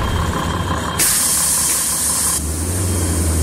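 Air brakes hiss sharply as a bus stops.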